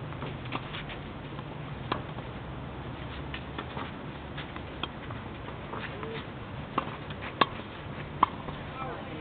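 Tennis balls are hit with sharp pops of the racket, some distance away.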